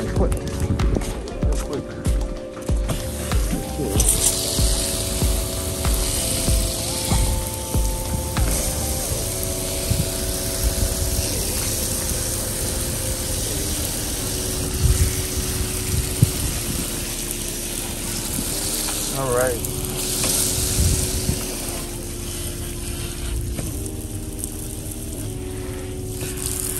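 Shallow water washes and splashes over a wooden deck.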